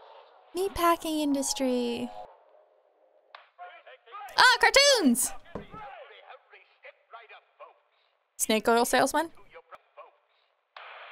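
A young woman speaks animatedly into a microphone, close by.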